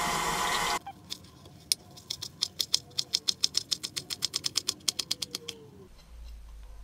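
A knife chops herbs on a wooden cutting board.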